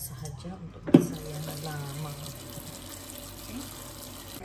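A tap runs, pouring a thin stream of water into a basin.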